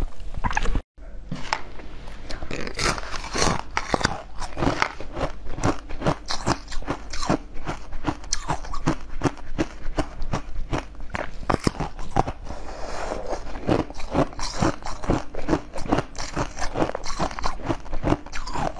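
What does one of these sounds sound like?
A young woman bites and chews firm jelly close to a microphone, with crisp wet clicks.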